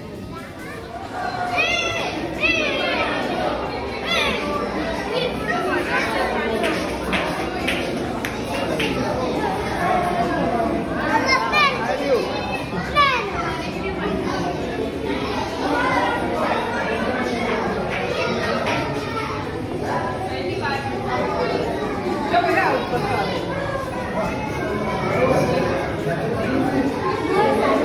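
A crowd of children and adults chatter nearby in an echoing room.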